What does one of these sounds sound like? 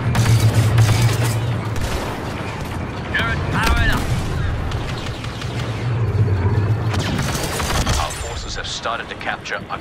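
Blaster guns fire in rapid bursts.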